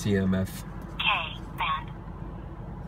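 A radar detector sounds a short electronic alert tone.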